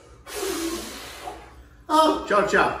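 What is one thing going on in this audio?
A man blows out candles with a strong puff of breath.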